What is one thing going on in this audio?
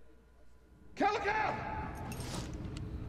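A young woman gasps awake.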